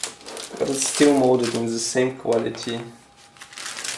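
Hard plastic model parts rattle and click as they are handled.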